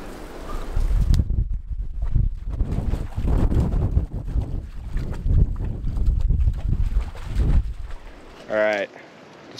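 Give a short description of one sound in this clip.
A dog splashes and wades through water.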